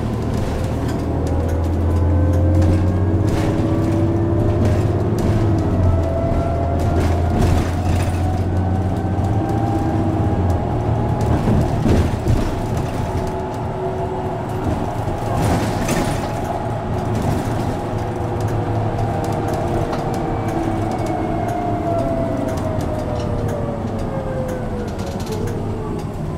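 Tyres roll steadily on a road.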